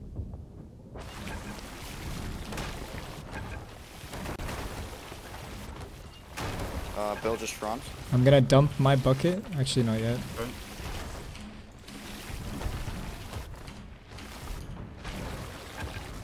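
Water gushes and sprays through holes in a wooden hull.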